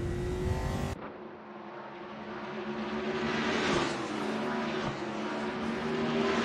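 Several race car engines drone and roar past on a track.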